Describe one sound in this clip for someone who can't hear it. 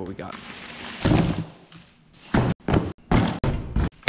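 A fabric tool bag rustles and thumps as it is handled.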